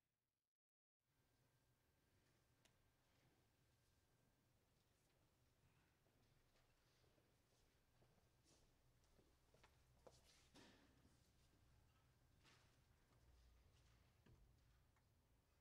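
Papers rustle faintly.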